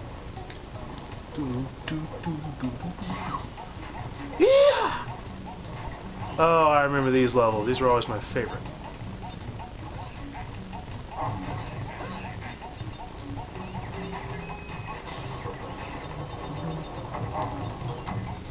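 Upbeat game music plays through a small loudspeaker.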